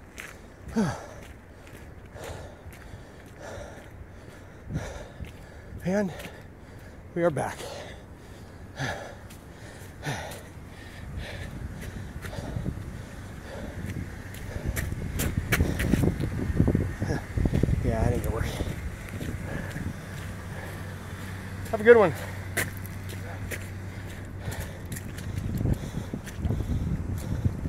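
Footsteps crunch steadily along a gravel path.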